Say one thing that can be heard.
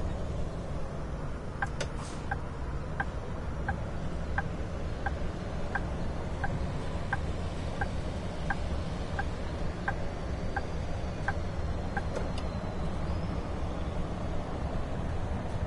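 A bus engine hums low and steadily as the bus drives along.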